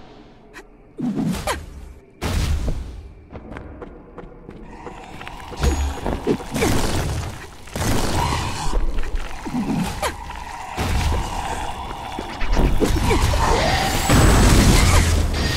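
Heavy blows strike with loud thuds.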